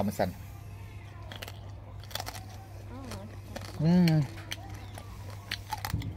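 A young man chews crunchy food with his mouth open.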